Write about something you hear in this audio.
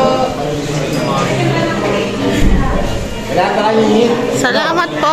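Several men and women chatter nearby.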